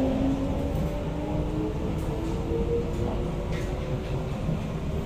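A train rumbles steadily along the tracks, with a low whine from its motors.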